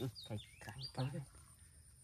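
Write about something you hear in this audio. Shallow water splashes as hands dig into it.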